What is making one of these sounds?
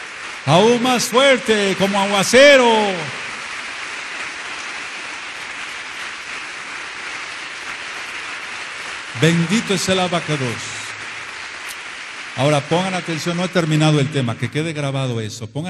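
An elderly man chants loudly and with feeling through a microphone, in a reverberant hall.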